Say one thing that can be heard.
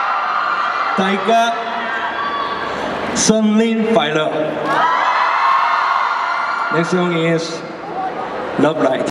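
A young man speaks cheerfully into a microphone over loudspeakers.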